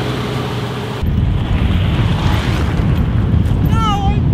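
Wind rumbles heavily against a moving vehicle.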